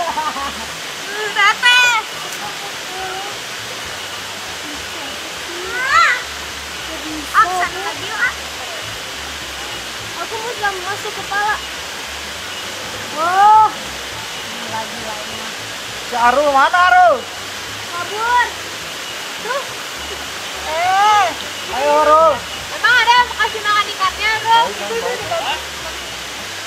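Water sloshes as people wade through a pond.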